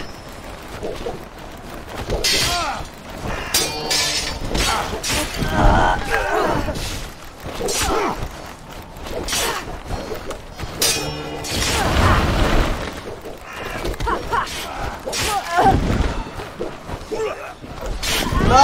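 Swords clash and clang in quick fights.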